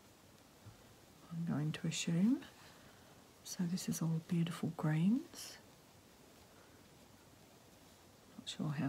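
Soft fibres rustle lightly between fingers.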